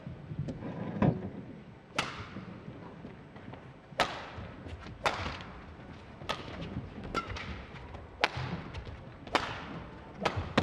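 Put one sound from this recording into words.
Badminton rackets strike a shuttlecock back and forth in a large indoor hall.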